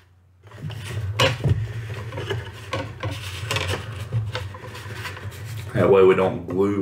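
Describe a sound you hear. Small plastic parts click and rustle as fingers handle them.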